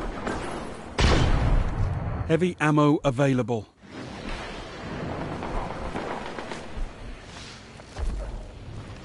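A rifle fires a loud, booming shot.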